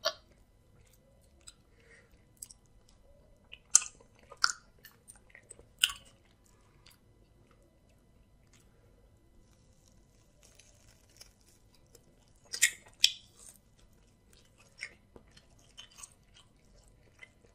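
Wet food squelches between fingers.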